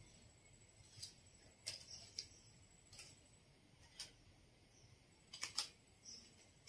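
Small items click softly as a young woman handles them.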